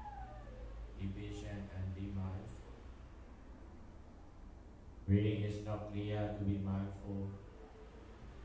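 A young man chants melodically into a microphone, heard through a loudspeaker in an echoing room.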